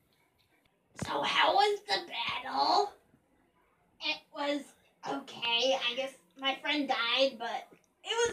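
A teenage girl speaks playfully close by.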